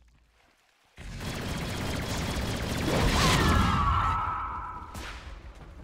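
Magic spells crackle and whoosh.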